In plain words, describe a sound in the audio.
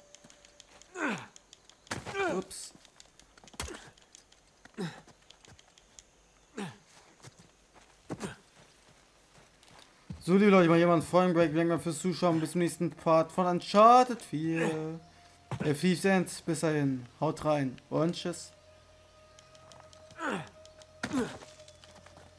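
Hands and feet thud and scrape on rock during climbing.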